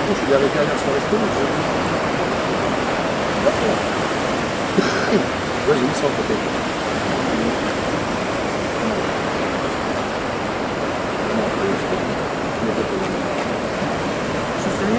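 Waves crash and roar against rocks.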